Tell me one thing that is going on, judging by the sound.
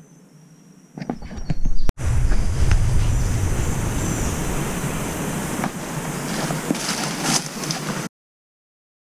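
Footsteps crunch through leaves and grass.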